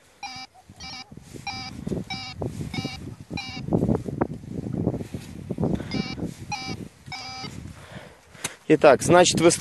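A detector coil brushes through dry grass.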